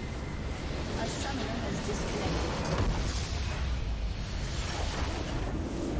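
A large building explodes with a deep boom in a video game.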